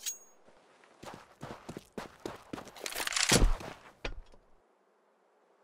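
Footsteps thud quickly on stone as a figure runs.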